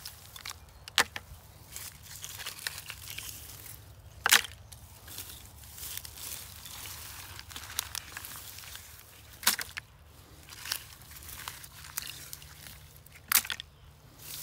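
Small plastic pieces clatter into a bucket.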